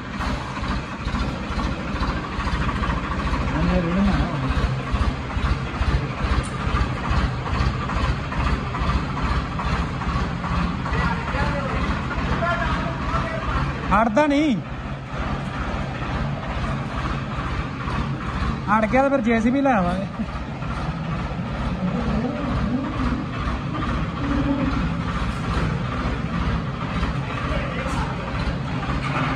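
A tractor diesel engine chugs steadily and comes closer.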